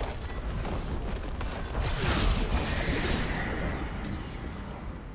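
Video game combat effects clash and whoosh in a skirmish.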